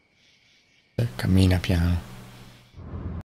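A man speaks close to a microphone, with animation.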